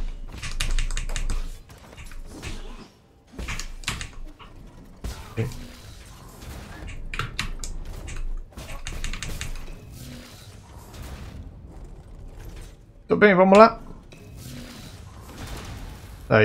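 Sword slashes and impacts clash rapidly.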